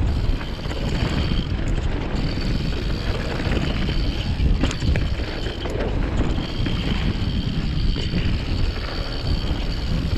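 Wind rushes loudly over a microphone outdoors.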